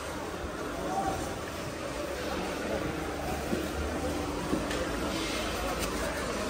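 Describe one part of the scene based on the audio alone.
A crowd of men and women chatter in a busy market.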